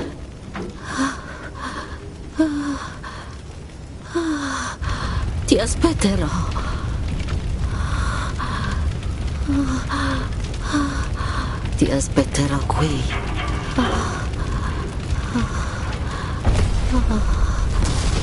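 A woman speaks softly and slowly.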